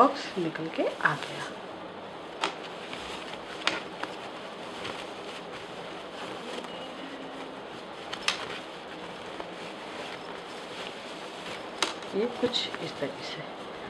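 Fabric rustles as hands handle it.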